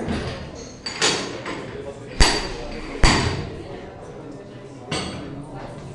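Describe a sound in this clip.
Metal weight plates clank sharply against a barbell.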